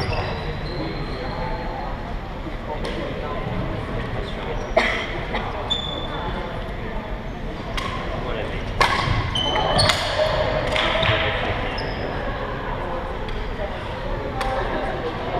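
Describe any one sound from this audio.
Shoes squeak sharply on a wooden floor.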